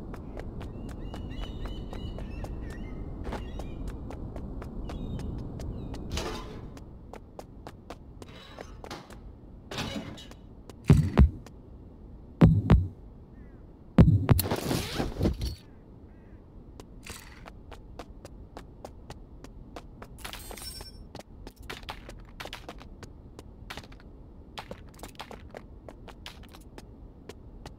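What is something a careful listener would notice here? Footsteps thud steadily on the ground and floors.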